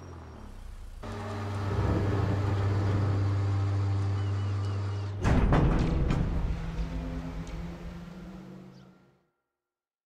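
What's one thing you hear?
A crane motor hums steadily.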